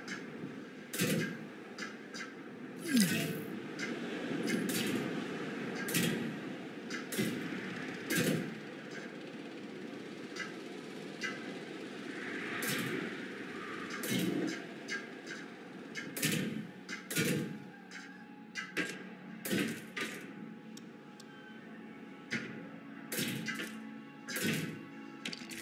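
Short clicks and thuds sound repeatedly as fence pieces are placed.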